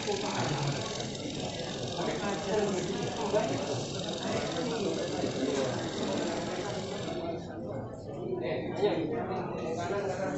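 Several men talk over one another.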